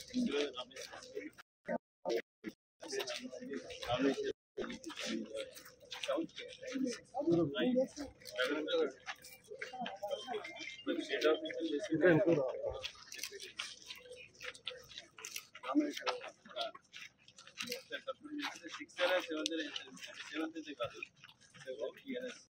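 Men talk and murmur nearby outdoors.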